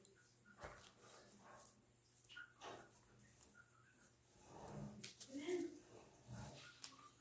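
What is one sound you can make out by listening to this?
Hands softly press and rub damp clay.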